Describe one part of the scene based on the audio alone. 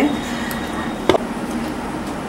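A metal spoon clinks against a metal bowl.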